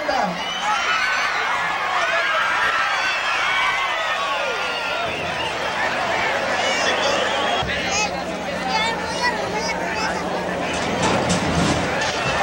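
A large crowd cheers and shouts throughout.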